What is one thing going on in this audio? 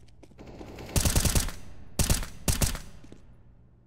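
A rifle fires several loud shots.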